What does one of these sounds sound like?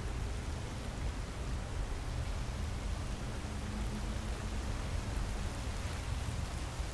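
A stream of crackling magic hums steadily.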